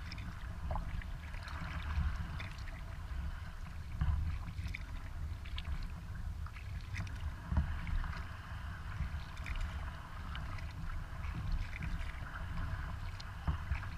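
Water laps softly against a kayak's hull as it glides along.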